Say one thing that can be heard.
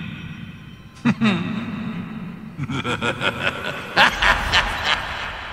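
A magic spell crackles and shimmers with a bright chime.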